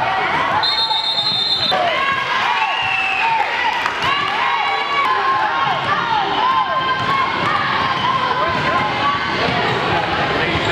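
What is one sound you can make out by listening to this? A crowd murmurs and chatters in an echoing gym.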